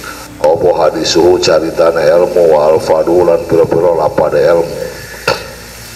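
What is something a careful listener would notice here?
An elderly man recites in a melodic voice close to a microphone.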